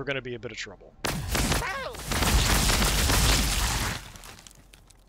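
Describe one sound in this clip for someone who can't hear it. Energy weapons fire with a loud crackling blast.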